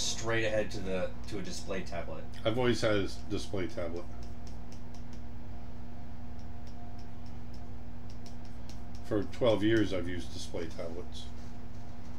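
A middle-aged man speaks calmly and close to a microphone, pausing between phrases.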